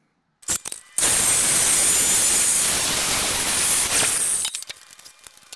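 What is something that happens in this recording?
A metal chop saw whines loudly as it cuts through steel.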